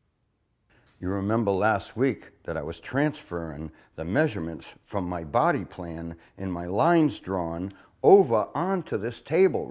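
An elderly man speaks calmly and clearly nearby.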